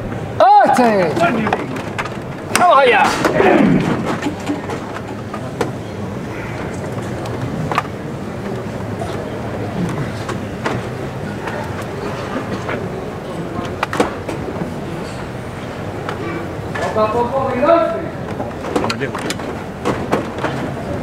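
A crowd of people murmurs and calls out nearby.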